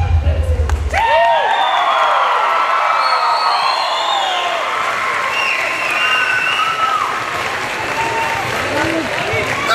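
A group of young men and women chant and call out loudly in a large hall.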